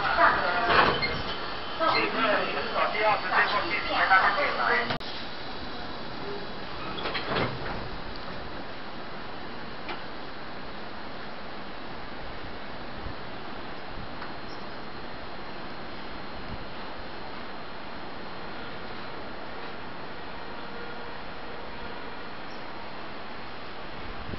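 A train idles with a steady low hum.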